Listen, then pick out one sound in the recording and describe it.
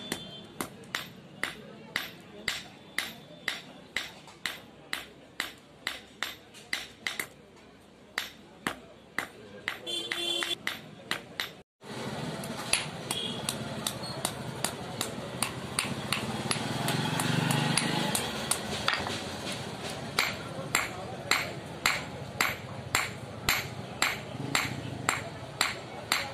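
A hammer strikes hot metal on an anvil in a steady ringing rhythm.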